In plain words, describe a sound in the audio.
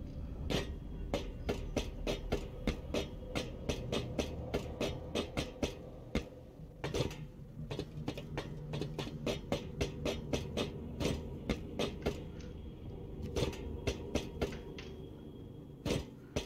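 Footsteps thud and clank quickly on a wooden and metal walkway.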